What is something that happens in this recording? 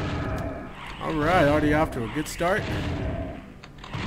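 A monster growls and roars.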